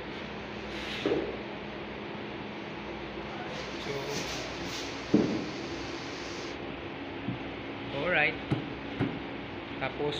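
Wooden boards knock and thud against a wall.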